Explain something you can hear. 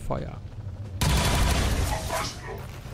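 A burst of gunfire rattles loudly.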